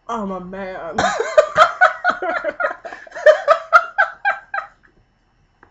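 A young woman laughs loudly.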